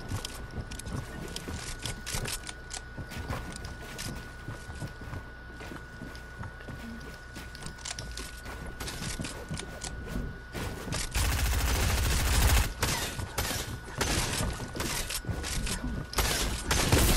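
Building pieces clatter and thud into place in quick bursts.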